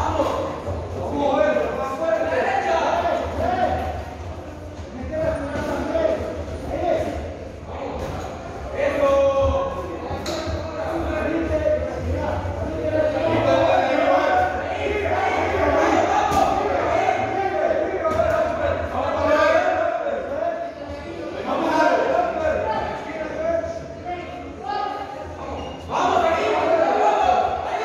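A crowd of people talk and shout throughout a large echoing hall.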